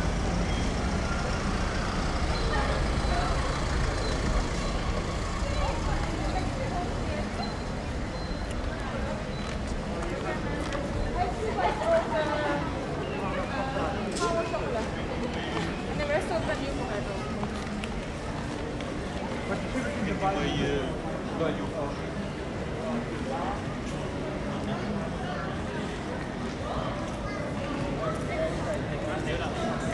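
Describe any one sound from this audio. Footsteps patter on pavement in a busy outdoor street.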